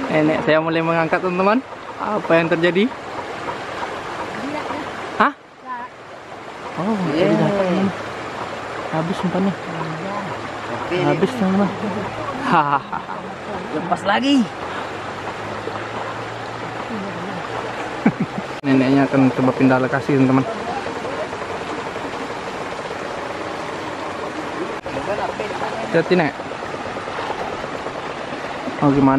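A shallow stream rushes over rocks.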